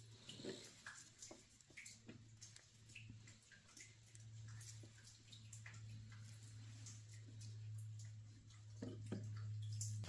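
Gloved fingers press on small metal parts, making faint clicks and taps.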